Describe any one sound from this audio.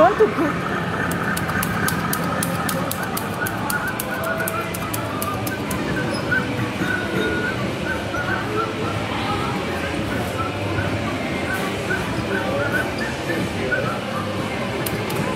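An arcade game plays bright electronic beeps and music.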